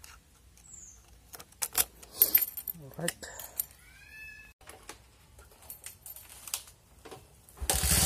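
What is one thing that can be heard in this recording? A key clicks and turns in an ignition.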